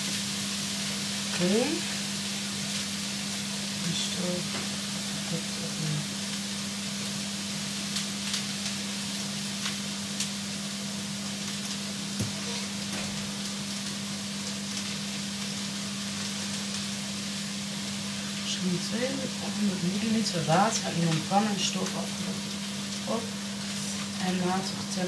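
A plastic packet crinkles in a woman's hands.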